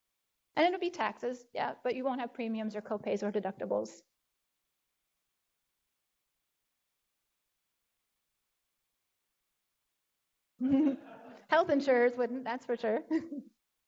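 A woman speaks calmly through a microphone, lecturing.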